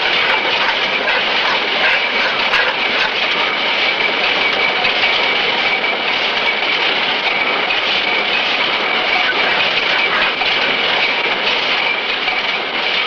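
Loom machinery clatters and whirs steadily.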